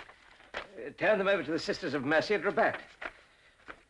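An elderly man speaks firmly and clearly, close by.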